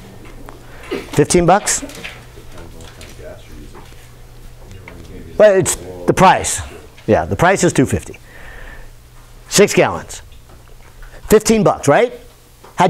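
A middle-aged man speaks with animation, in bursts with pauses.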